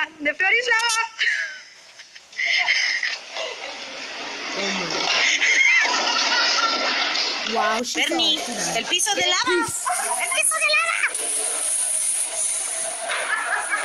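Young women laugh and shriek excitedly nearby.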